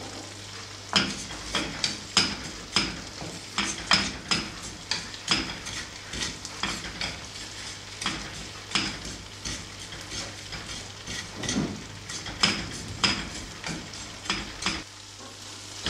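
A wooden spatula scrapes and stirs dry seeds in a pan.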